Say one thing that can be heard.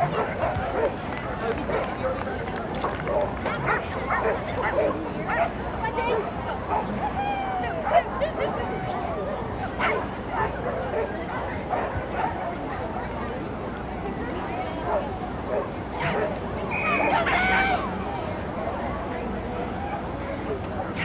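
A crowd chatters outdoors in the distance.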